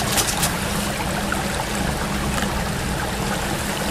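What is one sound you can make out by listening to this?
Water splashes as it pours from a bottle onto the ground.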